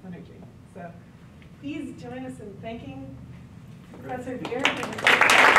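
A woman speaks to an audience in a room with some echo.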